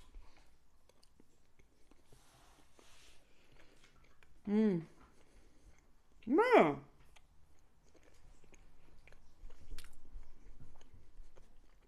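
A woman chews food noisily close to a microphone.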